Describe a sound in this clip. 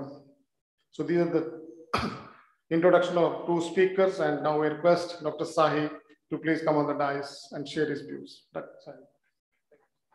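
A middle-aged man speaks calmly into a microphone, heard through an online call.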